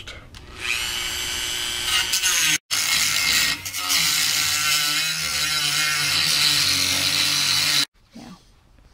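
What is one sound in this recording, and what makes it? A small rotary tool whines at high speed.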